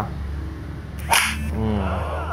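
A sharp slap lands with a loud smack.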